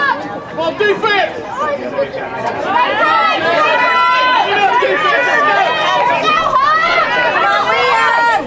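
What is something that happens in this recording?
Young players shout to one another across an open field.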